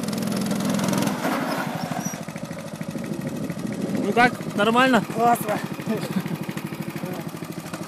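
A go-kart engine buzzes steadily up close.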